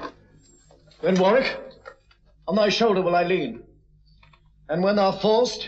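A man speaks in a deep, measured voice nearby.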